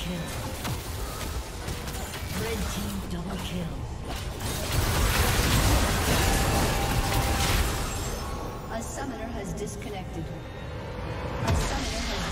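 Magic spells crackle and whoosh in a fast game battle.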